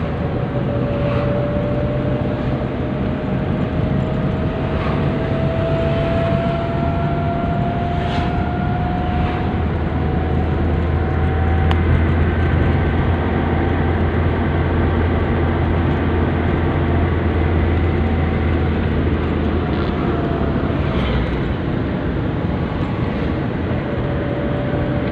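A car's engine and road noise drone from inside as it drives at highway speed.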